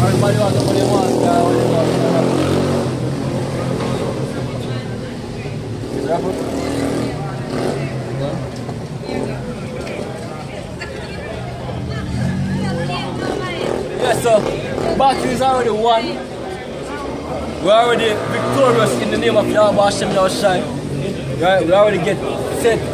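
A crowd of young men chatters loudly nearby.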